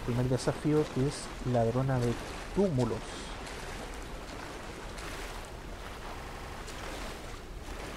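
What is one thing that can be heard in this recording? Water sloshes as someone wades through it.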